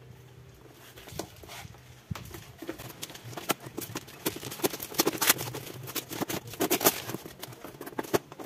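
Cardboard and paper packaging rustle and crackle as it is torn open.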